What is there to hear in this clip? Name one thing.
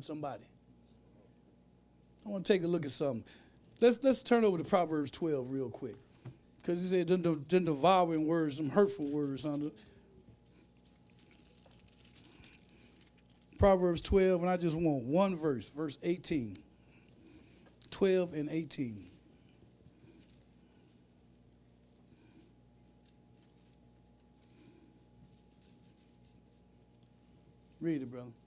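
A man speaks slowly and deliberately into a microphone, with long pauses.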